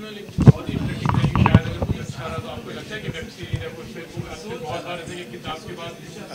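A middle-aged man speaks into microphones up close.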